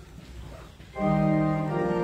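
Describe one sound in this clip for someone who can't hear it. An organ plays a loud sustained chord.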